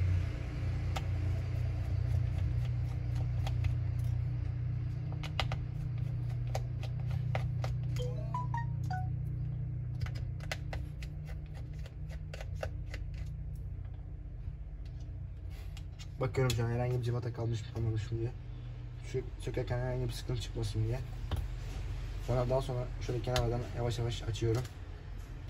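Small plastic parts click and tap against each other.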